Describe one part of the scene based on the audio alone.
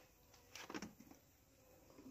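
A wooden lid scrapes as it is lifted off a box.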